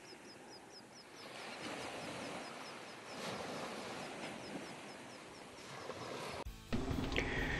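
Water ripples and laps softly.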